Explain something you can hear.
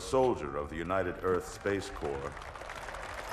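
An elderly man speaks formally and solemnly.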